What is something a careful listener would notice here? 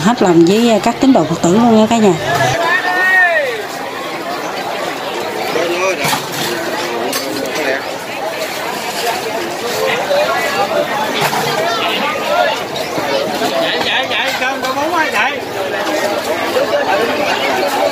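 A large crowd of men and women chatter all around, close by.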